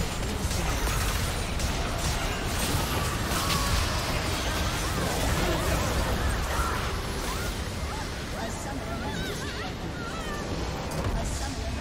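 Game spell effects burst and clash rapidly.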